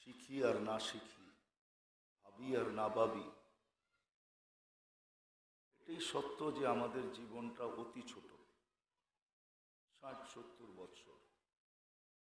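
An elderly man speaks forcefully into a microphone through a loudspeaker, in bursts with pauses.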